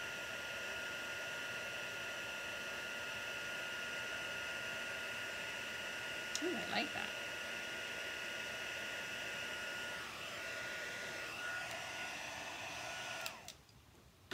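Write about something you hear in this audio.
A heat gun blows with a steady whirring hiss.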